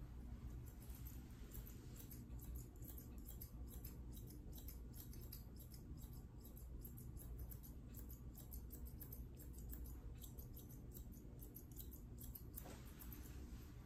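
Grooming scissors snip through a dog's curly coat.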